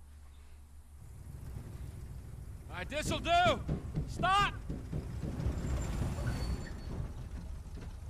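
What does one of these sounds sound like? A pickup truck engine rumbles low as the truck drives off.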